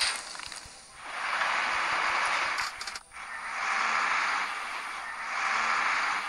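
A truck engine hums as it drives past.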